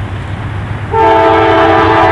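A diesel locomotive sounds its air horn.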